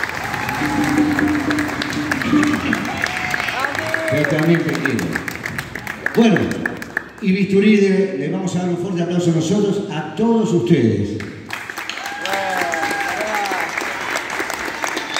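A man sings into a microphone over loudspeakers in a large echoing hall.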